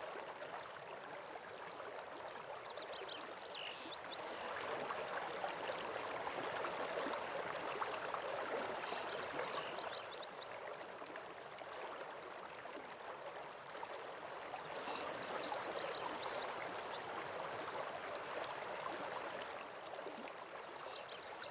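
A waterfall rushes steadily in the distance.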